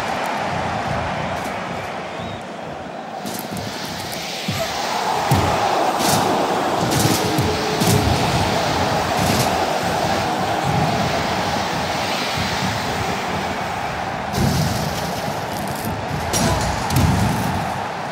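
A crowd roars in a large arena.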